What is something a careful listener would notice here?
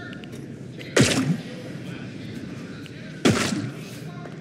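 A heavy metal pipe smashes into something with a loud crashing thud.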